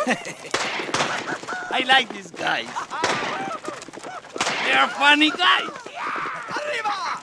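A man laughs loudly and heartily close by.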